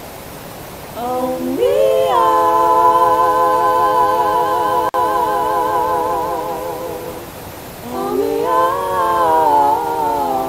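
A young man hums long, wavering notes close by.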